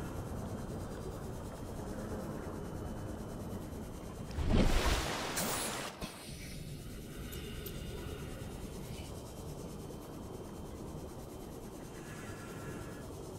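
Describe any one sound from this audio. A small submarine's engine hums low and steady underwater.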